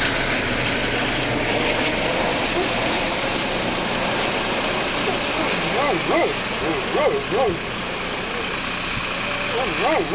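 A helicopter's engine whines steadily nearby on the ground.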